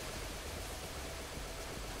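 A magic blast crackles and whooshes.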